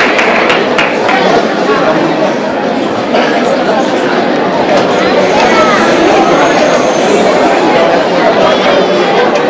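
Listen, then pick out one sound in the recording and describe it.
A choir sings.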